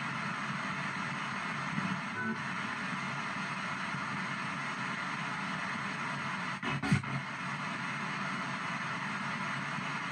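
A radio scans through stations, hissing loudly with static.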